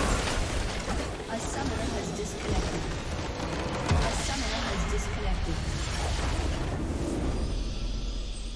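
Game spells and attacks crackle and clash in a busy fight.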